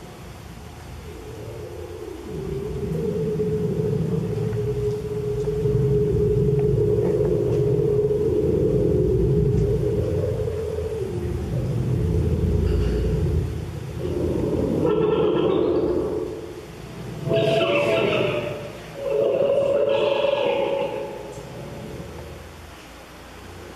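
Synthesized electronic sounds play through a loudspeaker, swelling and shifting.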